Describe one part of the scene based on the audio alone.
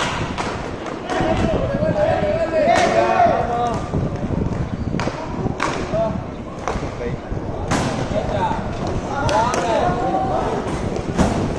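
Young men shout to each other across an open rink.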